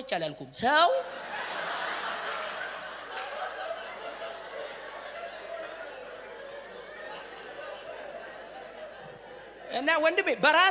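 A crowd of people laughs and murmurs.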